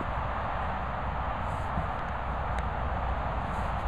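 A dog nudges a hollow plastic ball across grass.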